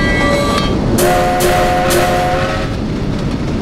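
A steam whistle blows.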